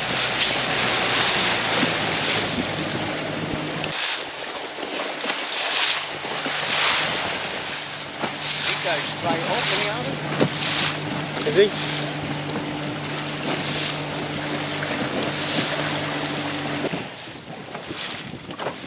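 Choppy waves lap and splash.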